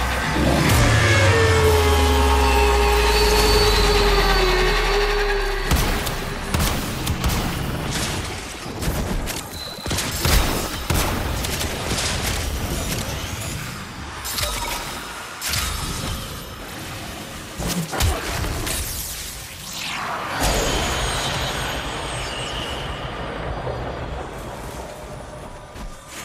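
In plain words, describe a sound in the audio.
Gunfire and energy blasts crackle in rapid bursts.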